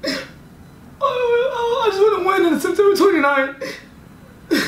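A young man sings playfully close by.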